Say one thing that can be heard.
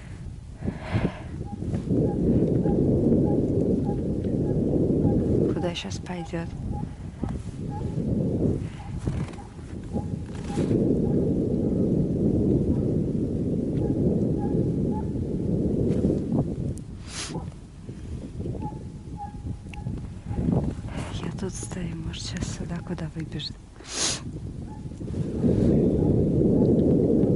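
Skis swish and crunch over snow.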